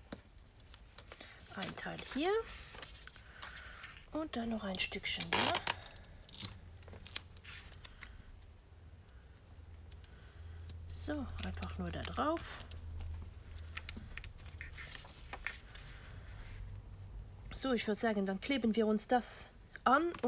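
Paper rustles and slides across a surface.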